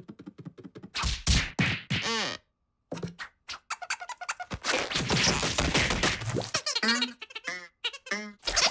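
Small cartoon creatures chatter in squeaky voices.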